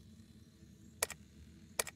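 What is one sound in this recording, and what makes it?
Short electronic menu blips sound twice.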